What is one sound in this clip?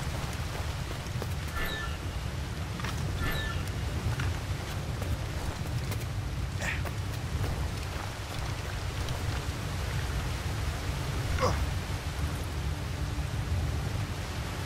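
Wind blows steadily and low.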